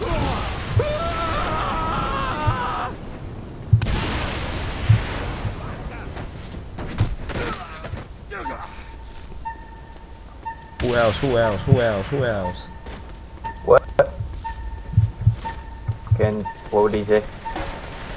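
Sharp impacts and thuds hit in bursts.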